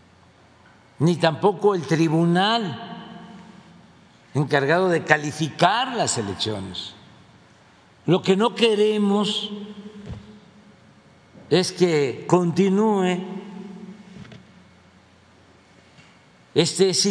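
An elderly man speaks calmly into a microphone in phrases with pauses.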